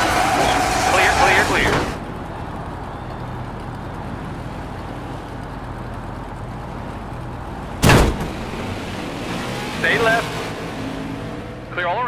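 A racing car engine roars steadily.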